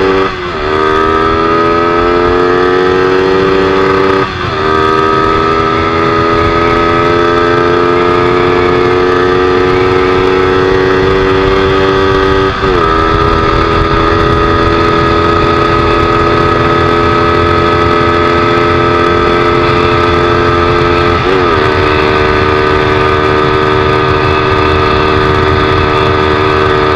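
A motorcycle engine roars up through the gears, with pitch rising in each gear then dropping at each shift.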